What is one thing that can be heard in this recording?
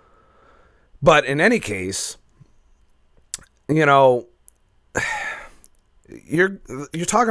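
A man speaks expressively and close into a microphone, with pauses.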